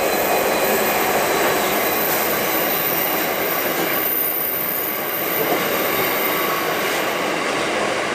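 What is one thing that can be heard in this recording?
Diesel locomotives rumble past, hauling loaded coal wagons.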